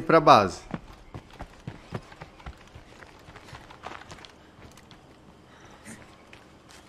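Footsteps crunch on dirt ground.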